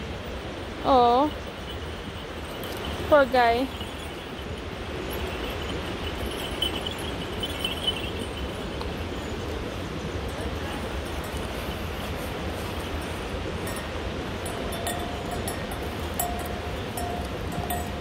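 Hooves clop on stone steps close by.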